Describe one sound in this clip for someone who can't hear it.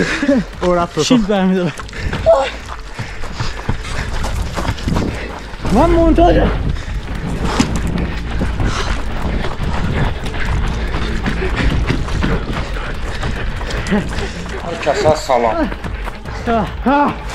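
Young men shout and laugh excitedly nearby.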